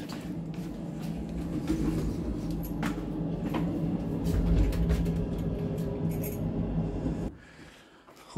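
A lift hums steadily as it moves.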